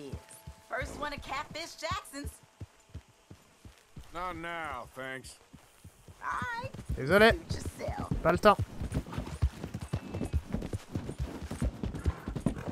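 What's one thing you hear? Horse hooves thud steadily on the ground.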